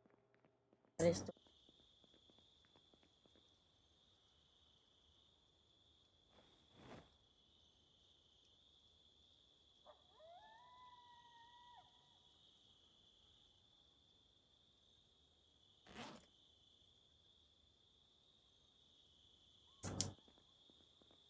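Short game item sounds thud now and then.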